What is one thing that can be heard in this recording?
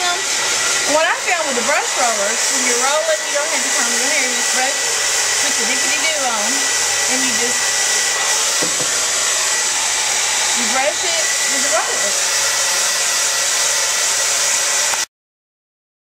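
A hair dryer blows with a steady loud whoosh.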